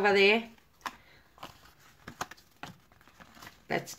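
A paper card rustles as hands handle it.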